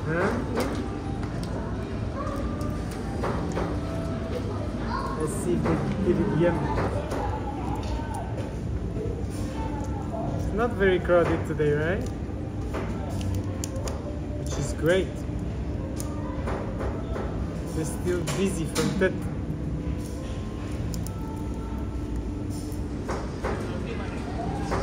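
Crisp shrimp shells crackle and snap as fingers peel them.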